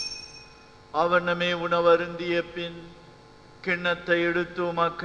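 An elderly man chants steadily into a microphone.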